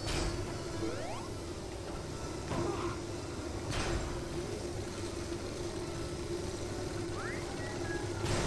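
Electricity crackles and zaps in sharp bursts.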